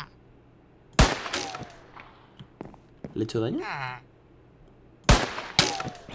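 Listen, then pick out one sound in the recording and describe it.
A sword strikes with sharp thwacks.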